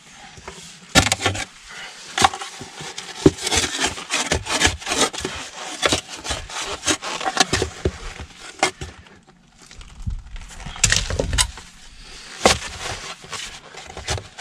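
A digging bar chops and scrapes into stony soil.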